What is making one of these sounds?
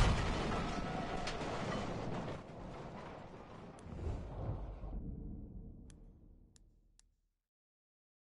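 Fire roars and crackles after a blast, then fades away.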